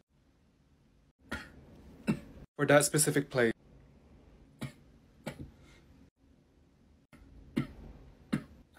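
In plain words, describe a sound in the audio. A young woman coughs and chokes behind her hand.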